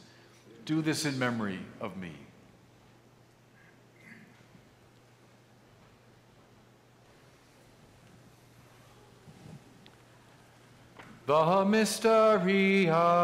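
An elderly man sings a slow chant through a microphone in an echoing hall.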